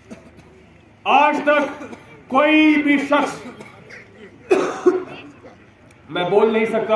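A young man speaks forcefully into a microphone through a loudspeaker outdoors.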